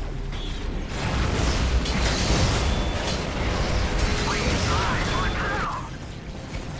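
Gunfire and explosions rattle and boom in a loud battle.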